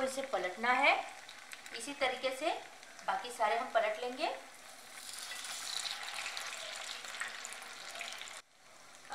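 Oil sizzles and crackles steadily in a frying pan.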